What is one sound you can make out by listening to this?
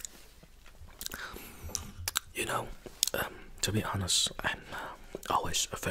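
A man whispers softly close to a microphone.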